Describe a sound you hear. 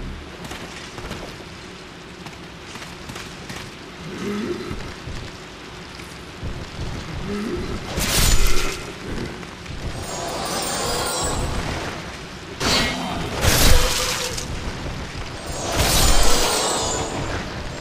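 Flames roar and crackle as a fireball bursts.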